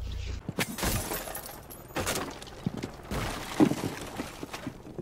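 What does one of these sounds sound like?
An explosion booms and debris clatters.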